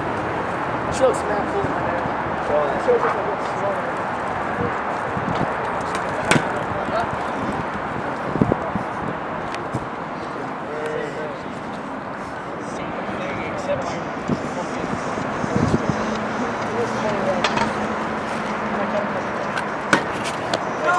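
A scooter deck and wheels clack sharply on concrete.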